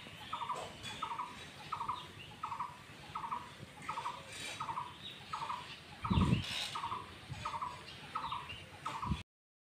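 Cattle munch and chew feed from a trough.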